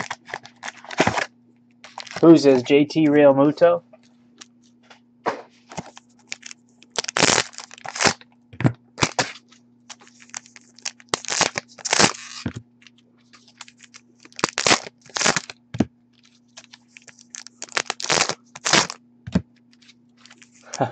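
Plastic card packs rustle and crinkle as hands handle them.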